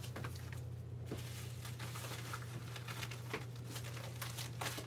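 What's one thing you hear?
A plastic mailing envelope crinkles.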